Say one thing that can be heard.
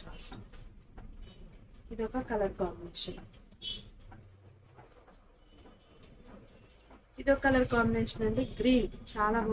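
Fabric rustles as cloth is unfolded and handled.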